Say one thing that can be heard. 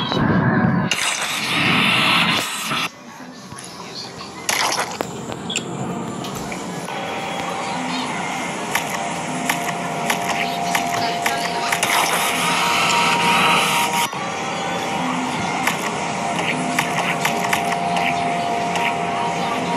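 Game sound effects blip and pop.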